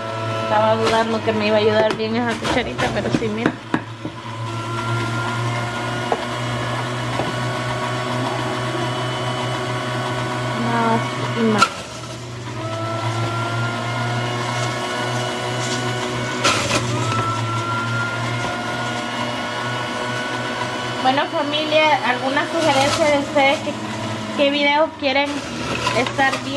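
Vegetables grind and crunch inside a juicer.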